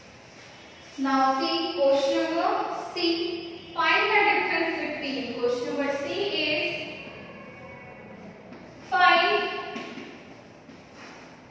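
A woman speaks clearly and steadily.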